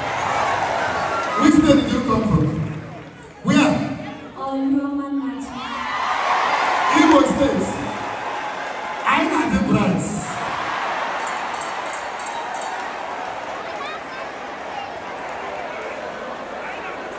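A crowd of children chatters and shouts close by.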